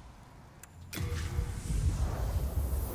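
A deep magical blast roars and rumbles.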